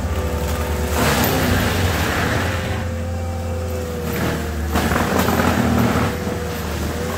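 A mulching head grinds and shreds brush in bursts.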